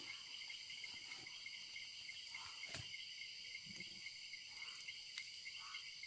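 Embers crackle softly in a fire.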